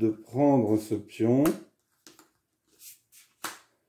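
A cardboard tile taps softly onto a table.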